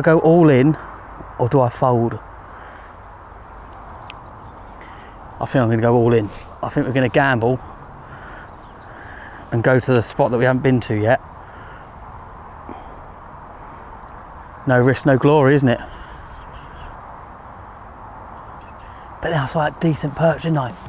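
A man talks calmly, close by, in short bursts.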